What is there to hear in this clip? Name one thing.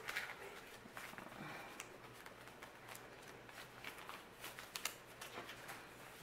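Banknotes are laid down on a table with soft slaps.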